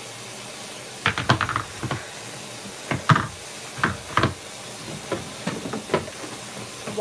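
A knife knocks against a wooden cutting board.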